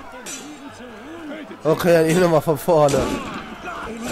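A musket fires a loud shot.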